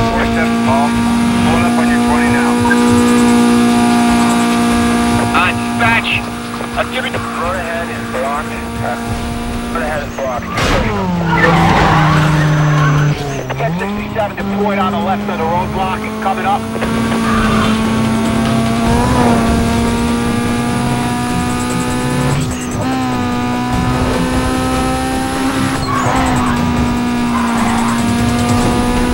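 A car engine roars at high speed, its pitch dropping as it slows and then climbing again.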